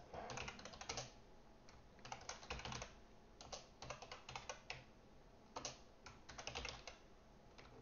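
Keys clatter in quick bursts of typing on a keyboard.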